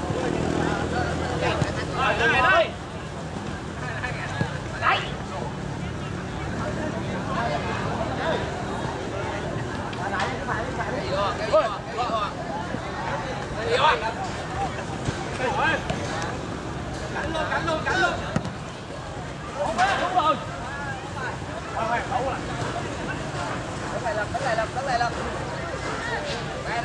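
A crowd of spectators murmurs and cheers outdoors.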